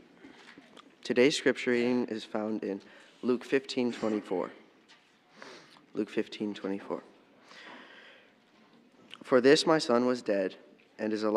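A young man speaks calmly through a microphone in a large hall.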